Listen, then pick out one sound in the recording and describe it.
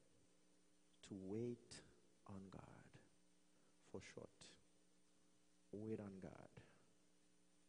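A man speaks slowly and calmly into a microphone, with pauses.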